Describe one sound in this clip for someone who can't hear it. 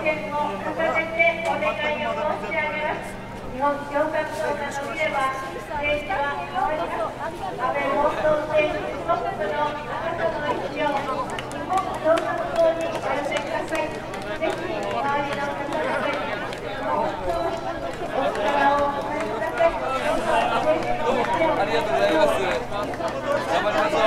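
A crowd chatters all around in a busy echoing space.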